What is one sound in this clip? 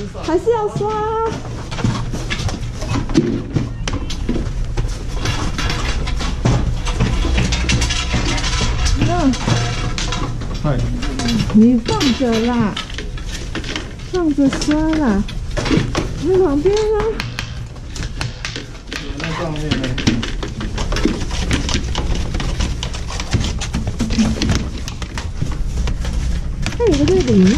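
Skis clatter and knock against a metal rack.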